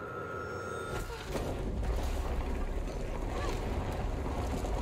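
Heavy debris crashes down with a deep, loud rumble.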